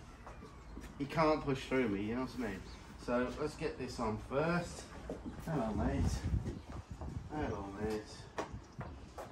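A man talks calmly nearby.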